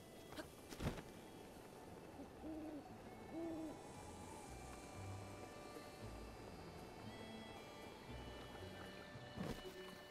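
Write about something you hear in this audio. Wind rushes past during a glide.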